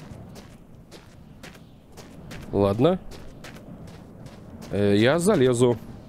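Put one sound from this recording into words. Footsteps swish through tall dry grass at a steady walking pace.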